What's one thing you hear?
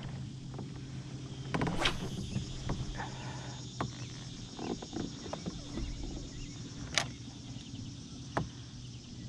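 Small waves lap against the hull of a kayak.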